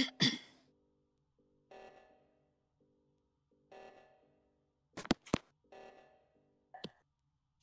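A handprint scanner in a video game hums in short repeated pulses.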